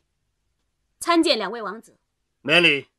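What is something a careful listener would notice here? A young woman speaks clearly.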